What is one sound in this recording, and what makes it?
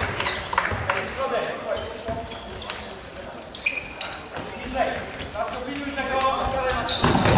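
Sports shoes squeak sharply on a hard court in an echoing hall.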